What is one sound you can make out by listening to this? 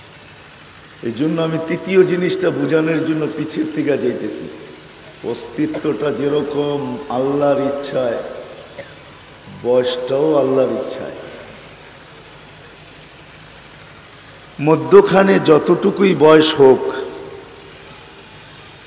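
An elderly man speaks with animation through a microphone and loudspeakers, in bursts with pauses.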